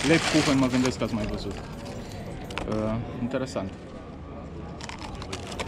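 Paper rustles around a pastry.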